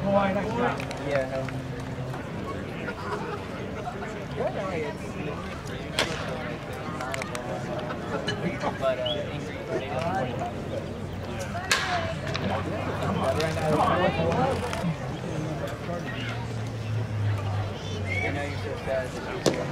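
A crowd of spectators chatters in the background.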